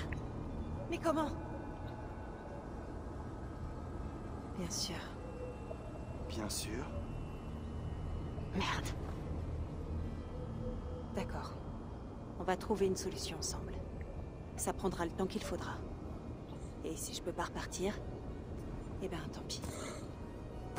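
A young woman speaks calmly and quietly, close by.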